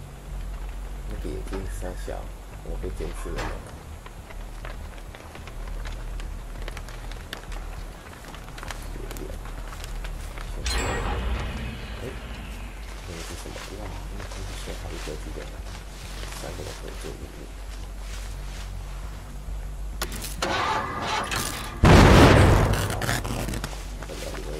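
A young man talks into a microphone, close and casual.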